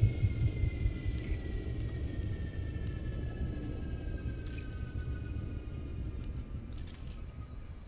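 Menu selections click and beep.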